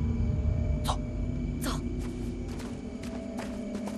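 Grass rustles as people crawl through it.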